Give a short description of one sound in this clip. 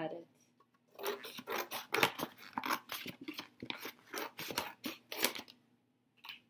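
Scissors snip through a paper plate.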